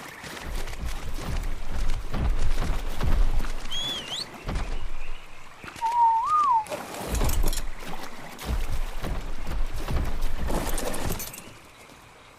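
Water splashes heavily as something wades through a stream.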